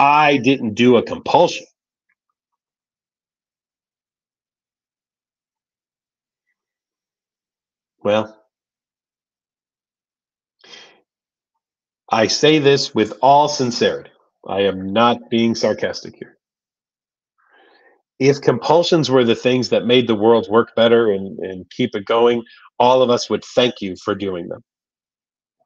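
A middle-aged man speaks calmly into a microphone, heard as if through an online call.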